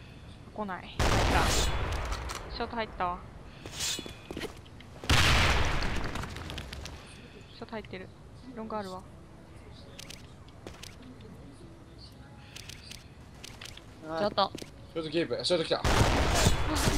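A sniper rifle fires loud, booming shots.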